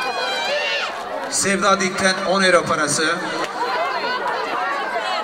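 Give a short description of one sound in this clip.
A crowd of women chatter loudly all around, outdoors.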